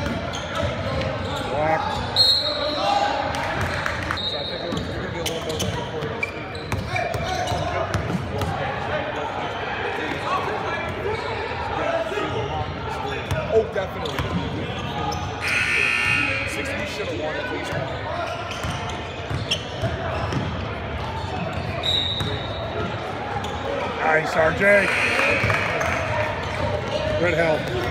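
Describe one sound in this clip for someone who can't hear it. Young men shout to each other in a large echoing gym.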